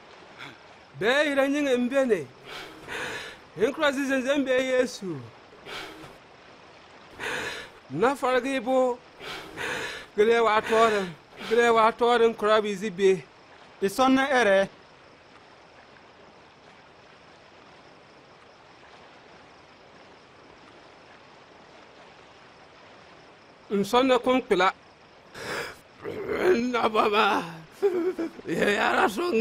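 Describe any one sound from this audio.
A man speaks close by in an emotional, pleading voice.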